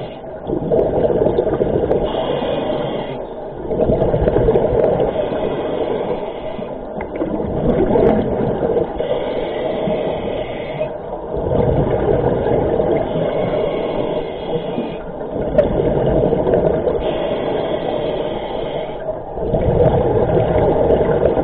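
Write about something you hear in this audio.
Air bubbles burst out and gurgle loudly underwater.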